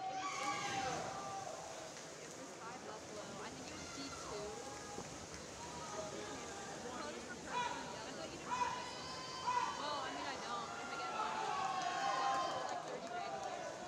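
Swimmers splash steadily through the water.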